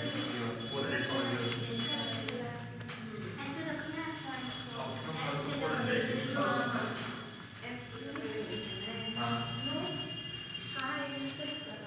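A young man speaks steadily and calmly close by.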